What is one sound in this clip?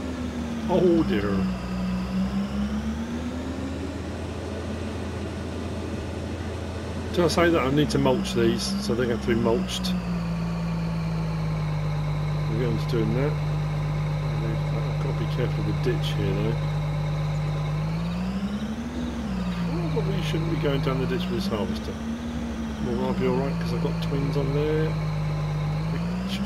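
A combine harvester's engine drones steadily, rising and falling in pitch.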